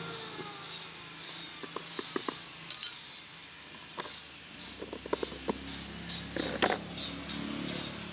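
Small tins clink and scrape on a concrete floor.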